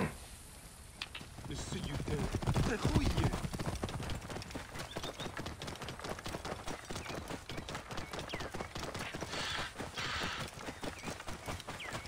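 A camel's hooves plod on a dirt path.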